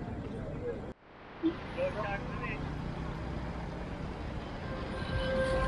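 Motorbikes drive past on a road.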